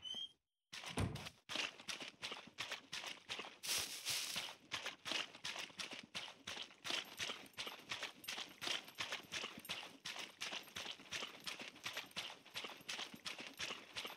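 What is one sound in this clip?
Quick footsteps run over muddy ground.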